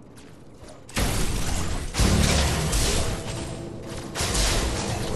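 Gunfire and explosions burst loudly in a game battle.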